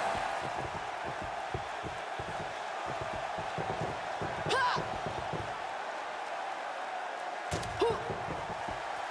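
A crowd murmurs and cheers steadily in a large arena.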